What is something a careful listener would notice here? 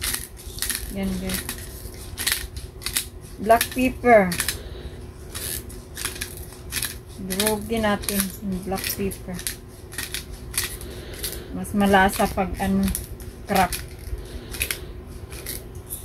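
A pepper grinder crunches and crackles in quick bursts.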